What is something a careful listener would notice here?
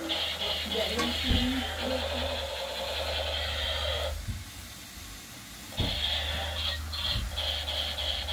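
A pot of water boils and bubbles steadily.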